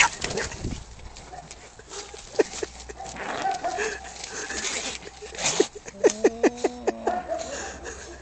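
Cats scuffle and thrash among dry leaves.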